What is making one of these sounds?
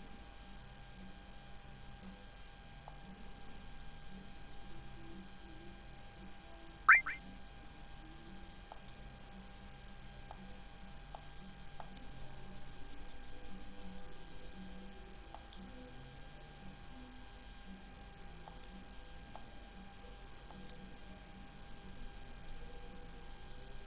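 Soft, slow game music plays throughout.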